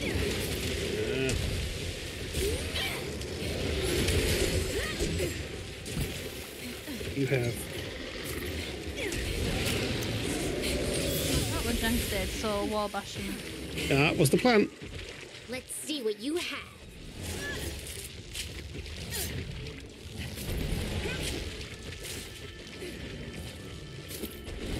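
Blades slash and strike a monster in quick hits.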